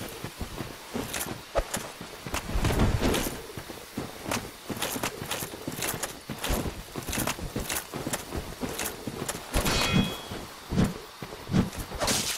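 Metal armor clinks with each step.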